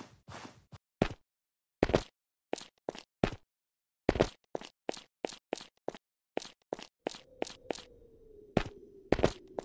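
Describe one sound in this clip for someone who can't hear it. Light footsteps patter unevenly.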